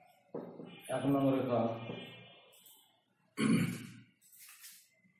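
An elderly man speaks calmly, as if teaching.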